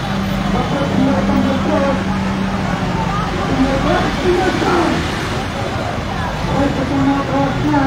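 A crowd of men chants and shouts loudly outdoors.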